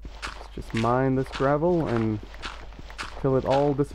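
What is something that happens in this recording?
Gravel crunches as a shovel digs into it.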